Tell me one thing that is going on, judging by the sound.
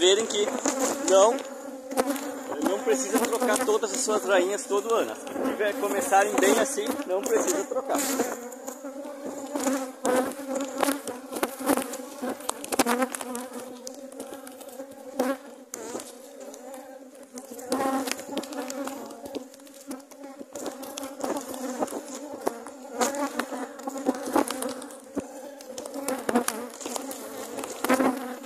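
Many bees buzz loudly and steadily close by.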